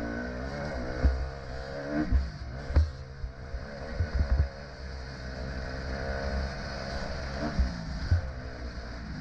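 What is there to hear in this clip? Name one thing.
A dirt bike's suspension thuds over bumps in the track.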